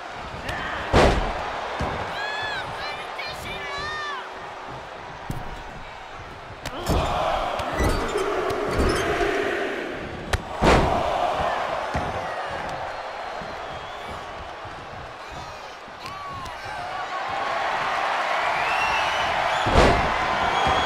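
A body slams hard onto a wrestling ring mat with a loud thud.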